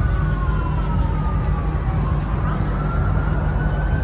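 A pickup truck drives past on the road.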